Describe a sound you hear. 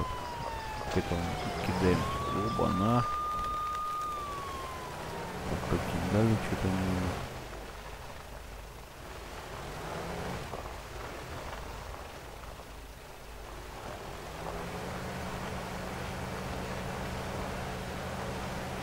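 A truck engine rumbles steadily, rising and falling as it revs.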